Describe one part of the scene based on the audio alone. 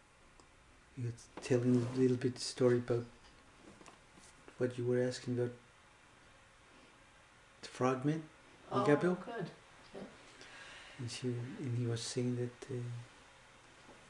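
An older man speaks calmly close by, in short bursts.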